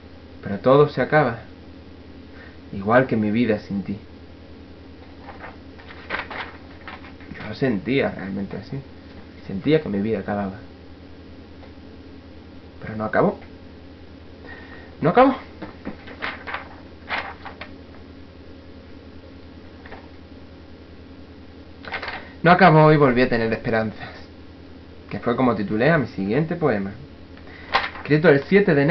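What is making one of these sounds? A young man talks close to the microphone in short bursts, with pauses between.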